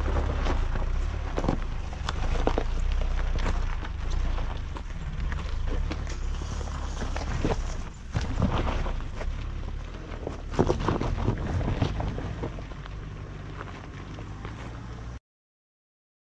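A small off-road vehicle's engine rumbles as it drives up a rough track.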